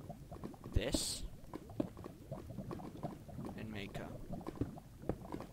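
Lava bubbles and pops softly.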